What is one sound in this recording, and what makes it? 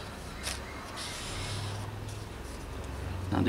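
Paper rustles softly as a sheet is moved.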